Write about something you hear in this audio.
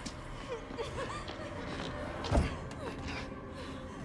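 A heavy wooden door thuds as it is pushed.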